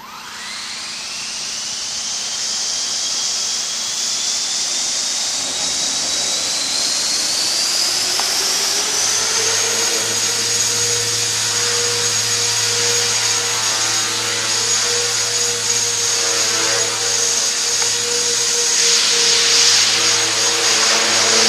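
Model helicopter rotor blades whir and buzz while hovering.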